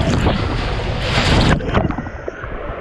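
Water splashes hard as a rider lands.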